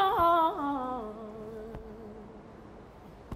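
A man lets out a long, falling moan close by.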